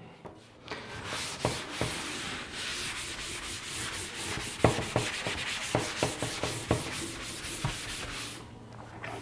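A duster rubs and scrubs across a chalkboard.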